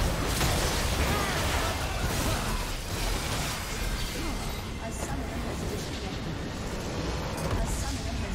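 Spells and weapon hits clash loudly in a video game battle.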